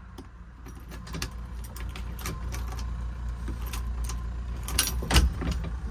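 Keys jingle and rattle in a door lock.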